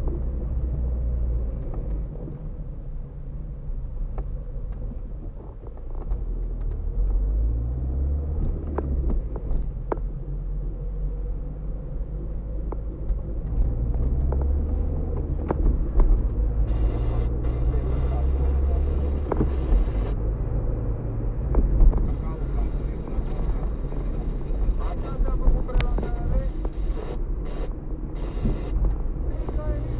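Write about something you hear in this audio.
The car body rattles and clicks over bumps.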